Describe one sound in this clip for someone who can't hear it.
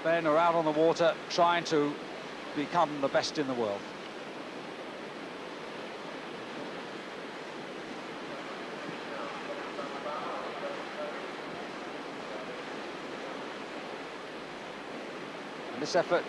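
Paddles splash in rough water.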